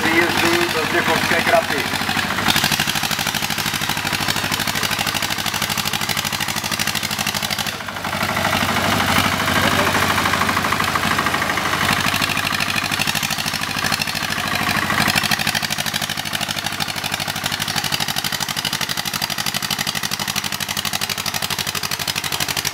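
Tractor tyres churn through thick mud.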